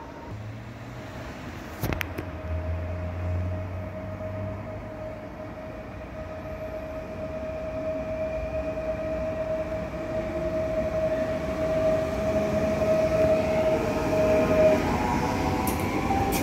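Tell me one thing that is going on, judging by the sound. A train approaches along the track with a rising hum and rumble.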